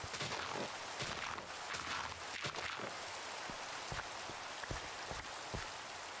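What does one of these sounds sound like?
Dirt crunches in short bursts as it is dug.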